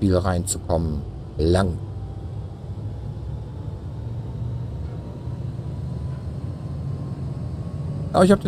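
A spacecraft's engine hums low and steady.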